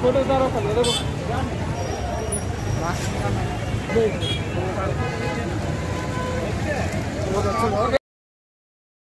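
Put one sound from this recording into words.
A crowd of men talks and murmurs outdoors close by.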